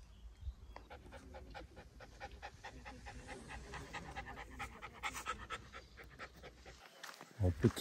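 A dog pants rapidly.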